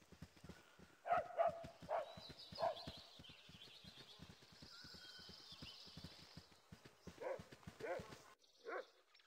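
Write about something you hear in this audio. Footsteps tread steadily on dirt and grass.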